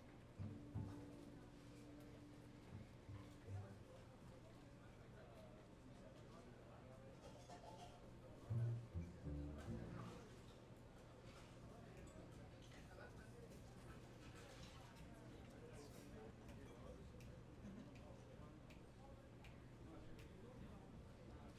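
Drums and cymbals tap softly.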